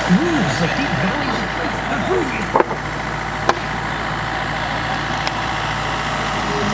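An excavator engine idles with a steady low rumble.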